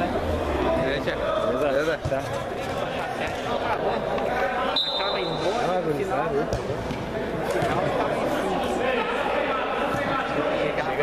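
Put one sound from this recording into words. Players shout and call out across a large echoing hall.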